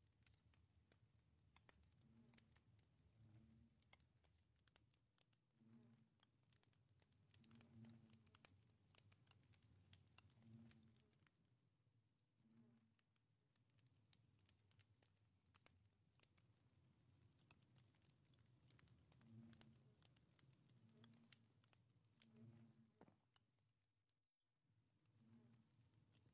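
Quick soft clicks sound as items are moved around an inventory.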